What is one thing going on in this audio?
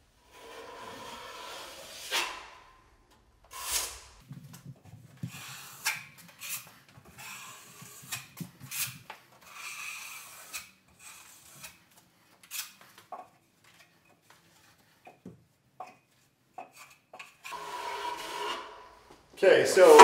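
A drywall knife scrapes joint compound across drywall.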